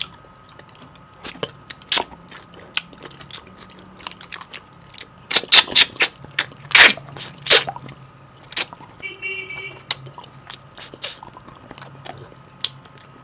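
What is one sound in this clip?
A man chews and smacks his lips loudly, close to a microphone.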